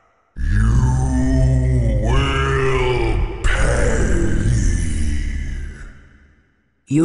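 A man roars with a deep, rumbling growl.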